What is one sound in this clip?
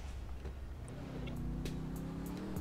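A car engine starts and idles.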